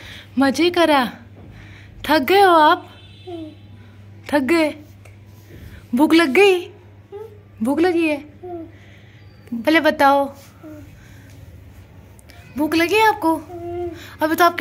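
A young boy speaks in short bursts close by, with pauses between phrases.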